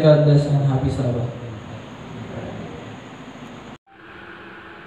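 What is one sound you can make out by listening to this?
A man speaks through a loudspeaker in an echoing hall.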